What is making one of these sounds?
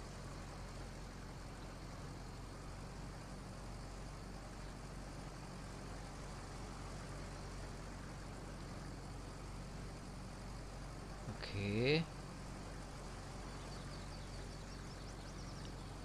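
A heavy harvester engine hums steadily as the machine rolls slowly along.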